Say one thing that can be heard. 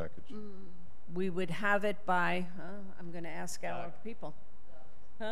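An older woman speaks into a microphone, heard through a room's sound system.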